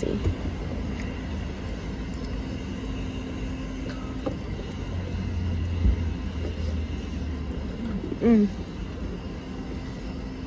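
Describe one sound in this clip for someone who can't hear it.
A young woman chews food noisily close by.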